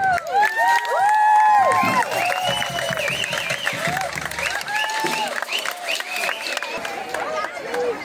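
A drum band plays loud drums outdoors.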